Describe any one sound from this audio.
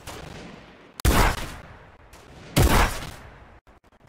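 A rifle fires loud single shots that echo.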